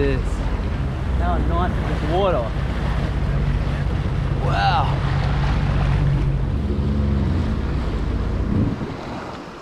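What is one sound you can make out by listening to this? A jet ski engine idles with a low rumble.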